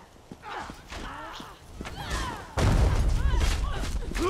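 Footsteps thud on the ground.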